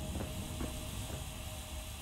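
A metal cutter grinds with a steady hiss.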